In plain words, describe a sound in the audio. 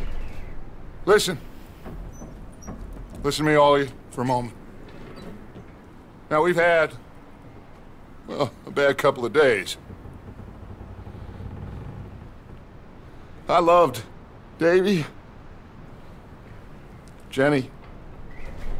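A man speaks in a low, calm voice, in short phrases with pauses.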